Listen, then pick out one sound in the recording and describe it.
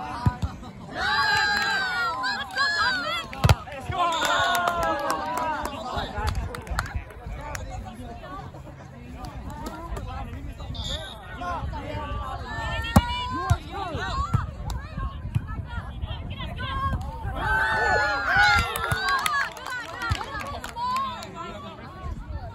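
Young women shout and cheer excitedly outdoors.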